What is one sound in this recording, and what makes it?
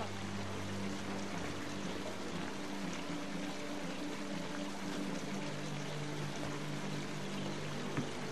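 Footsteps tread softly on muddy ground.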